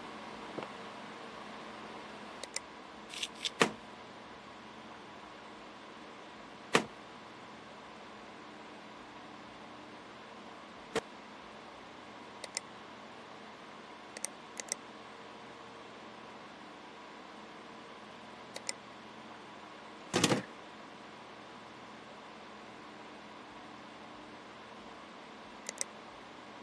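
Short interface clicks and chimes sound now and then.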